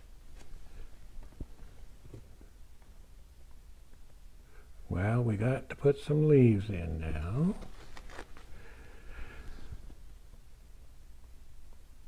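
A paintbrush dabs and strokes softly on canvas.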